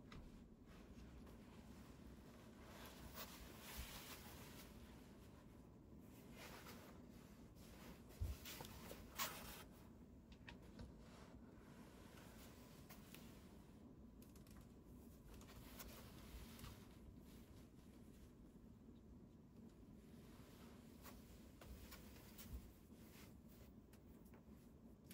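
A cat shifts on a quilt, rustling the fabric softly.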